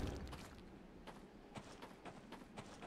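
Footsteps patter on dry ground.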